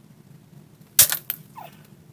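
A flake of flint snaps off with a sharp click.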